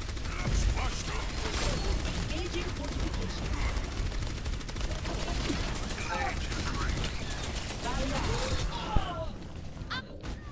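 Guns fire rapidly with loud energy blasts.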